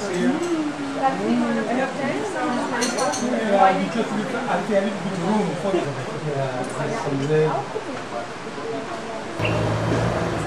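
A woman talks calmly a short distance away outdoors.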